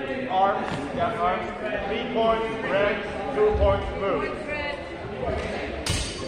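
A man speaks loudly and with animation close by, in a large echoing hall.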